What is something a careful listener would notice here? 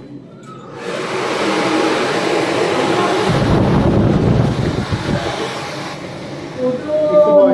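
Clothing rustles and rubs against the microphone.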